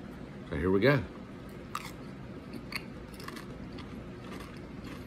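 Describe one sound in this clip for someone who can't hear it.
A potato chip crunches as a man chews it.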